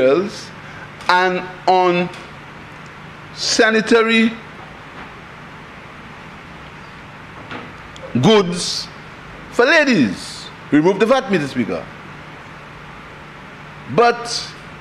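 A man speaks forcefully into a microphone in short bursts with pauses.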